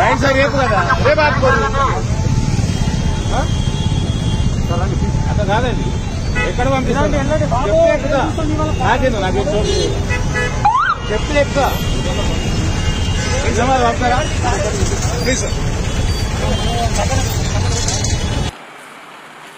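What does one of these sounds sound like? Several men argue loudly and excitedly close by.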